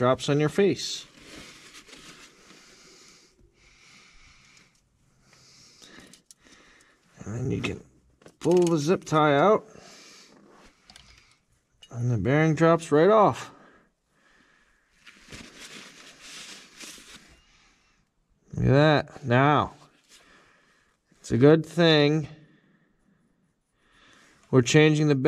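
A man talks calmly and close by, in short bursts.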